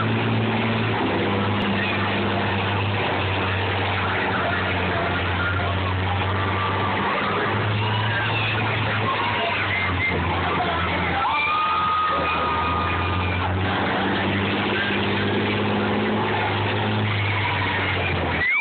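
Combine harvester engines roar and rumble loudly nearby.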